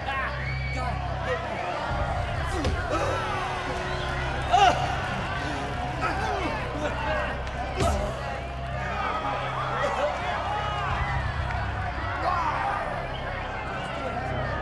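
A man shouts taunts with animation.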